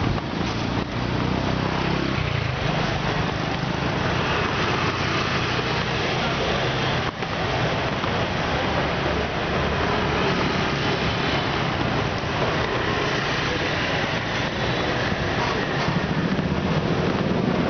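Wind rumbles steadily.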